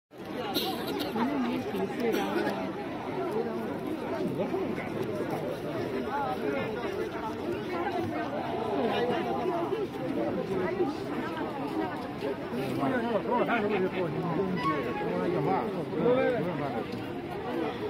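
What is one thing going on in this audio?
A crowd of adults chatters all around outdoors.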